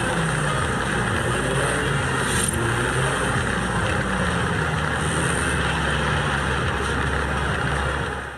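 A sports car engine drones as the car cruises at speed.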